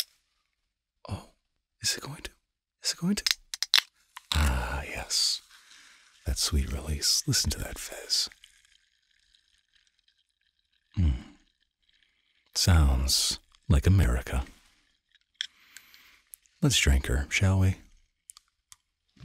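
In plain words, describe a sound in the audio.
A man speaks softly close into a microphone.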